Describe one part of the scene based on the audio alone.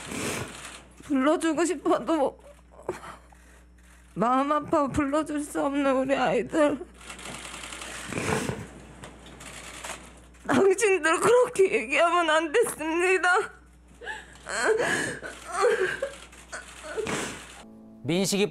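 A young woman speaks into a microphone in a trembling, tearful voice.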